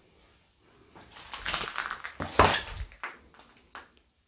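Footsteps crunch on gritty debris.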